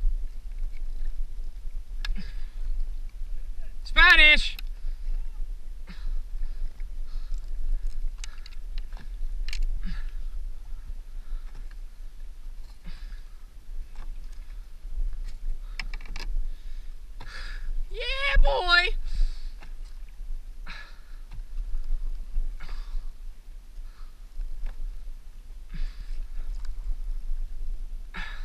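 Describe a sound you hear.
Small waves lap and splash against a kayak's hull.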